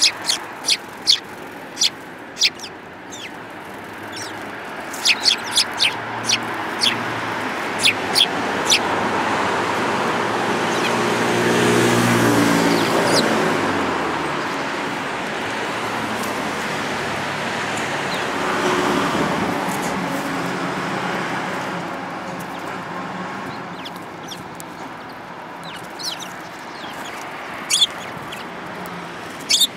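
Sparrows chirp sharply close by.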